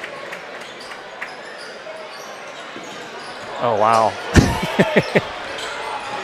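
Sneakers squeak sharply on a gym floor in an echoing hall.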